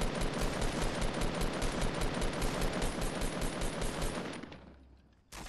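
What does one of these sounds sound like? Rapid gunfire rattles in fast bursts.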